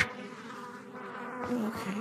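Small flames crackle softly.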